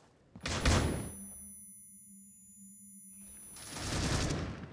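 A high, steady ringing follows a blast and slowly fades.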